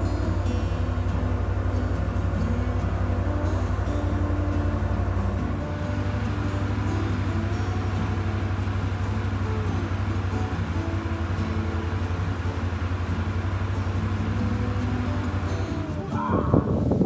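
An all-terrain vehicle engine drones steadily in the distance.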